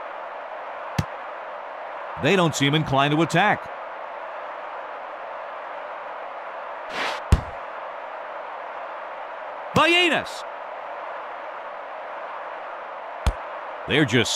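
A football is kicked with short thuds.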